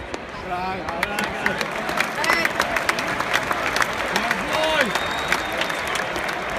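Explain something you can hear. Fans nearby clap and whistle in a short burst of cheering.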